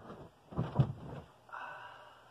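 Bedding rustles and thumps as someone moves on a bed.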